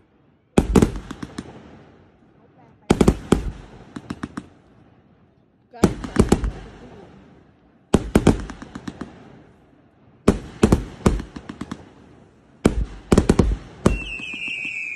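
Fireworks burst with loud bangs and crackling in the open air.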